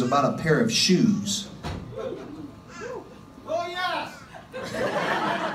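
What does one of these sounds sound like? A young man speaks into a microphone over a loudspeaker in a live room.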